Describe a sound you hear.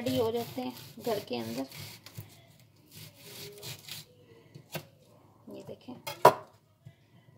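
A knife taps against a cutting board while slicing an onion.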